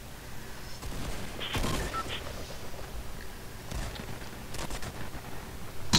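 Footsteps patter on grass.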